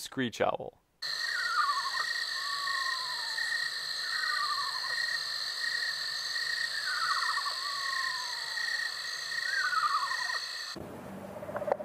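An owl calls with repeated descending whinnying trills.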